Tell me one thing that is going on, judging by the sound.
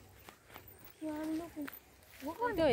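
A boy talks nearby outdoors.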